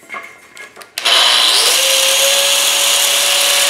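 An angle grinder whines loudly as it cuts into metal.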